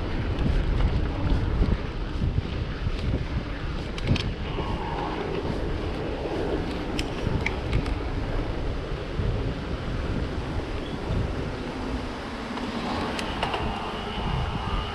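Wind rushes steadily past, loud and buffeting.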